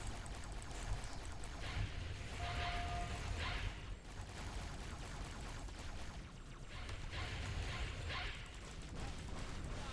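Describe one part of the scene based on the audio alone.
Plasma gunfire crackles and bursts in rapid shots.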